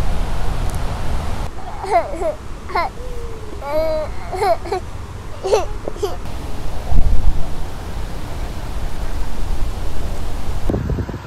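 Wind blows across an open microphone outdoors.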